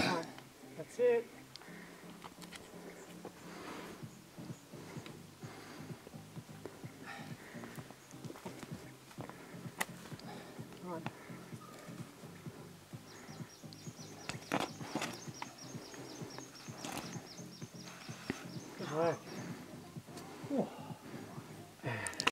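A man breathes hard with effort.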